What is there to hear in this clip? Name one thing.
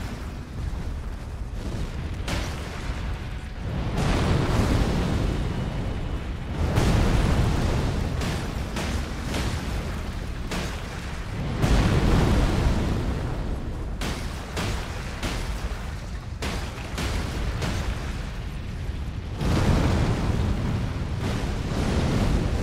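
Explosions boom with deep rumbling.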